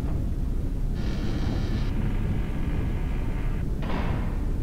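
A heavy stone door grinds open.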